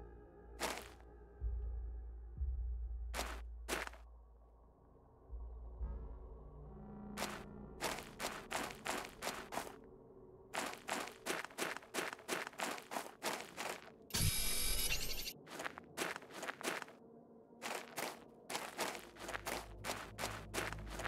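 Footsteps crunch steadily on sand and gravel.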